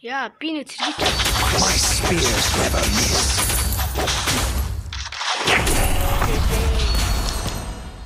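Game combat effects clash and crackle loudly.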